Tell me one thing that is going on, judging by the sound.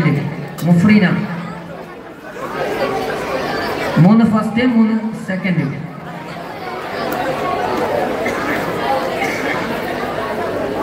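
A crowd of men murmurs and chatters.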